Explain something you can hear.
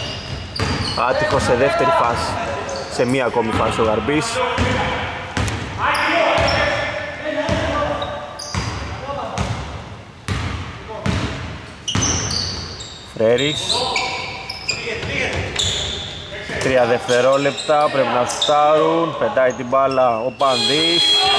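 Sneakers squeak sharply on a court.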